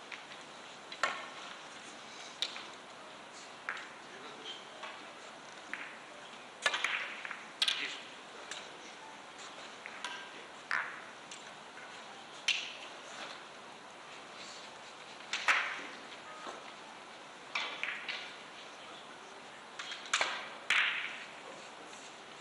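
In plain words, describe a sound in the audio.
A cue tip strikes a billiard ball.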